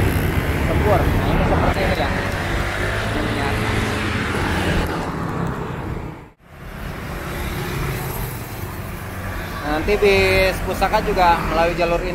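Motorbike engines buzz and hum in busy street traffic.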